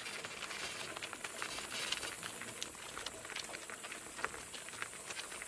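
Harness fittings jingle and creak.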